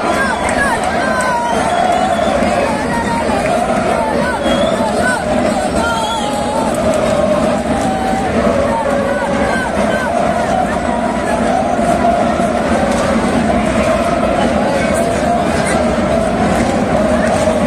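A huge crowd chants loudly in unison, echoing across an open stadium.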